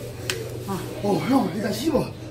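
A second young man speaks excitedly close by.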